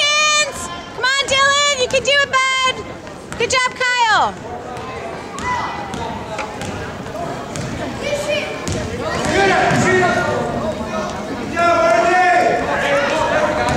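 A crowd of adults and children cheers and shouts in an echoing hall.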